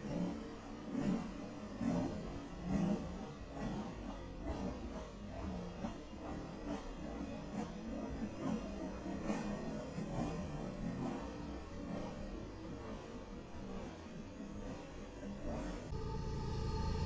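Train wheels clack rhythmically over rail joints as passenger cars roll past.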